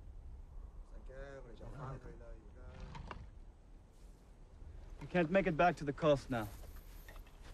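A man speaks firmly outdoors.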